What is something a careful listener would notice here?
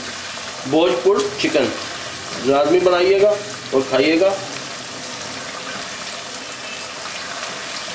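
A spatula stirs and scrapes around a pot.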